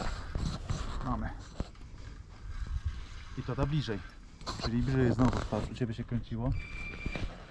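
A man talks close by in a low, calm voice.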